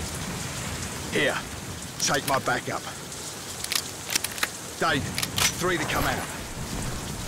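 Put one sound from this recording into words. A man speaks in a low, rough voice close by.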